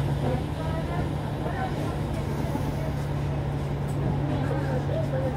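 A bus engine hums steadily at low pitch.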